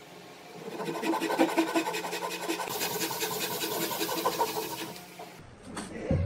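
A back saw cuts through softwood in quick strokes.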